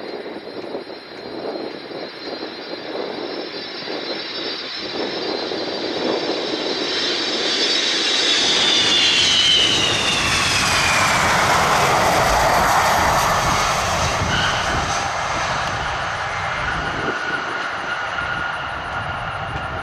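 A jet's engines whine and roar as it approaches, growing louder and then dropping in pitch as it passes close by.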